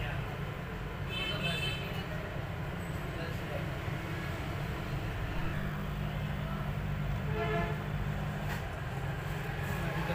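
A small circuit board taps lightly against a metal holder.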